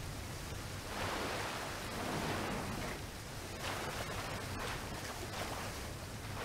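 Water pours and splashes nearby.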